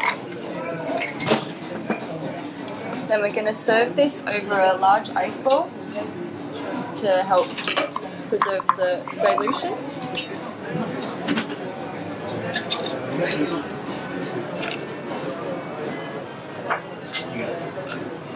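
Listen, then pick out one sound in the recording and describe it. Ice cubes clink against glass.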